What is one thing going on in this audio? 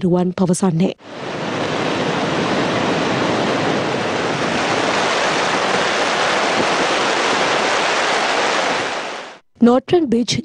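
Floodwater roars and churns loudly.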